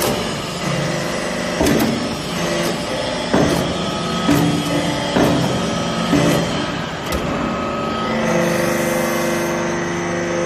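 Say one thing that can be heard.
A hydraulic press hums steadily.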